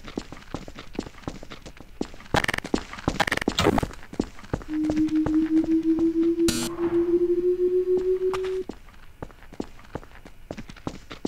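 Footsteps patter steadily on hard ground.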